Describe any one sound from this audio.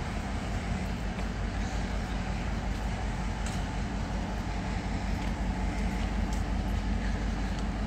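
A freight train rumbles past close by.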